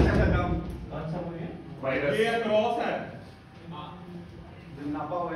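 A man talks casually nearby, in a room with a slight echo.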